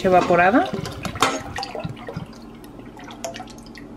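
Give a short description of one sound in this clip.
Liquid pours into a pot with a splash.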